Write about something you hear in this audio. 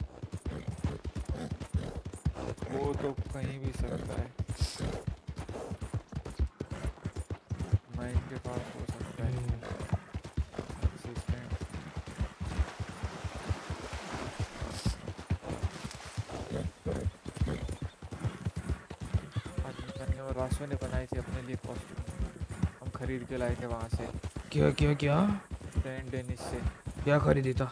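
A horse gallops with hooves thudding on a dirt path.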